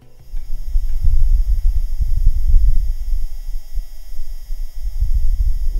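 A machine hums faintly and steadily in the background.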